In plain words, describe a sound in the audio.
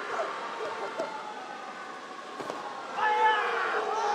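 A body thuds onto a padded mat.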